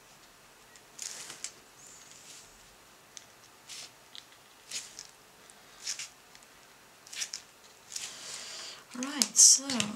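A paint marker tip dabs and scratches on watercolour paper.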